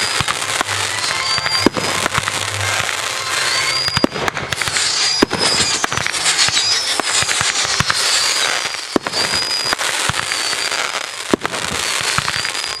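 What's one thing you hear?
Fireworks bang and boom in quick succession.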